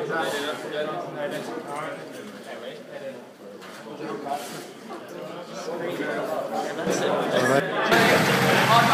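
Men talk and laugh nearby in a small room.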